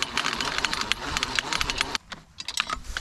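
A fence reel ratchets and clicks rapidly as it winds.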